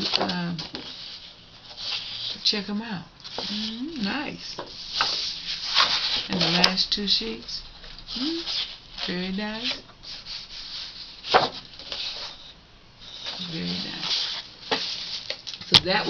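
Sheets of stiff paper rustle and slide as they are handled.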